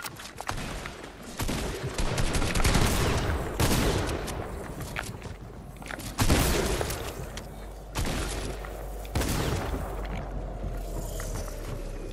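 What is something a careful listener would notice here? Game building pieces clatter and thud in quick bursts.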